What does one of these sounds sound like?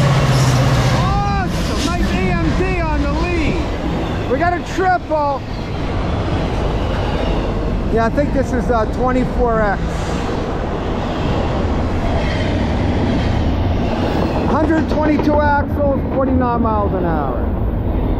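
Freight cars rumble and clatter along the rails.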